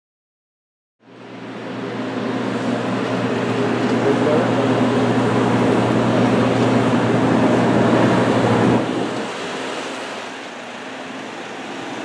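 Jet engines whine and roar loudly outdoors.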